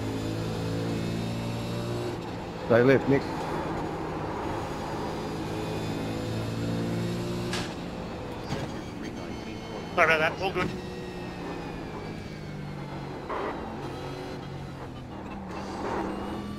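A racing car engine roars and shifts gears steadily.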